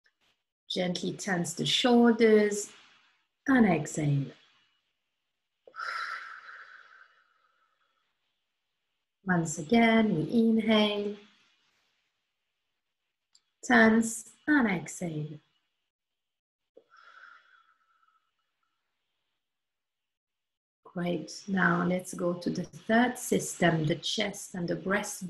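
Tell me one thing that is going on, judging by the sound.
A woman speaks calmly and slowly, close to a microphone, with pauses between phrases.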